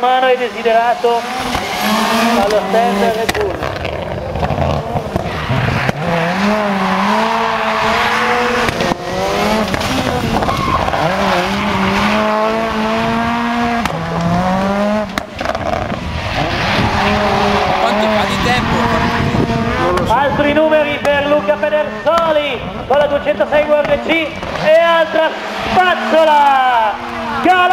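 A rally car engine revs hard and roars, rising and falling in pitch.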